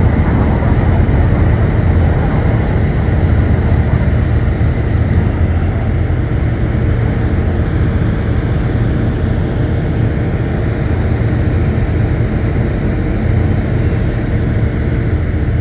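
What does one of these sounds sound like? Jet airliners roar overhead in a low, steady rumble.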